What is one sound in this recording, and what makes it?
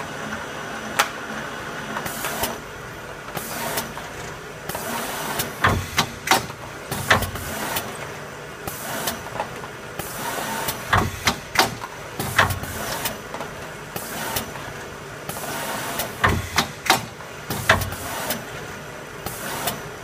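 Sharp clacks and thumps come from the machine's moving parts.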